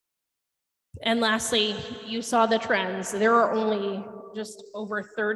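A woman speaks steadily through a microphone in a large room.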